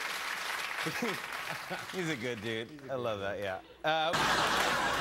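A man laughs softly near a microphone.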